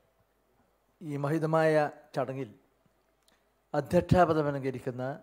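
An elderly man speaks slowly into a microphone over loudspeakers.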